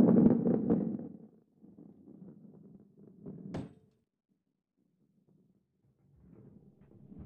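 A heavy ball rolls along a track with a low rumble.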